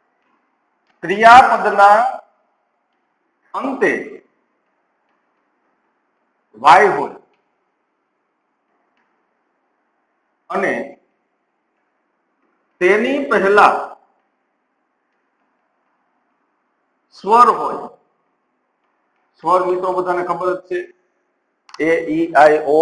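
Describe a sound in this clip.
A man speaks calmly in short phrases, with pauses between them.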